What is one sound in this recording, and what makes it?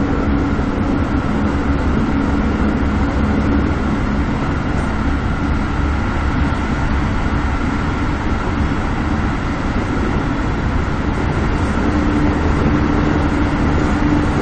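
A train rumbles steadily along the tracks, its motor humming.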